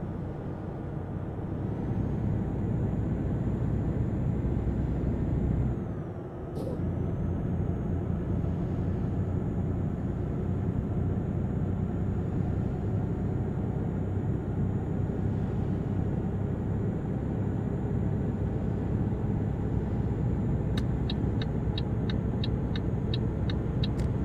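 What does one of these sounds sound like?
A truck engine rumbles steadily at cruising speed.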